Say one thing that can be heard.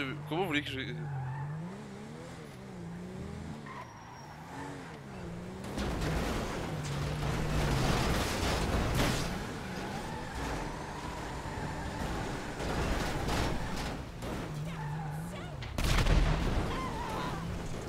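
A car engine roars.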